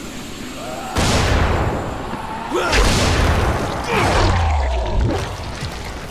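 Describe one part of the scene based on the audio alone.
A large explosion booms and rumbles.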